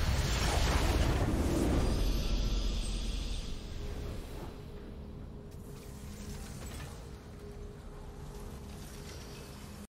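A triumphant fanfare swells.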